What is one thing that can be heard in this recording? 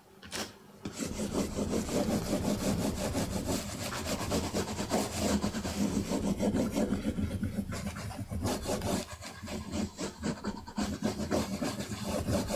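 A pad rubs rapidly and firmly back and forth over paper, with a rough scraping swish.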